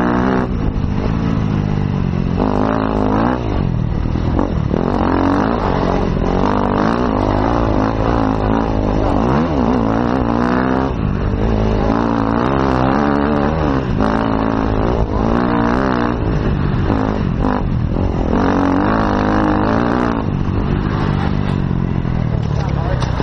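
A dirt bike engine roars loudly up close, revving up and down.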